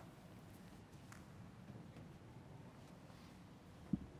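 Footsteps shuffle softly across a large echoing hall.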